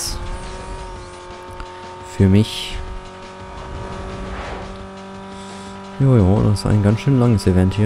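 A racing car engine roars steadily at high speed.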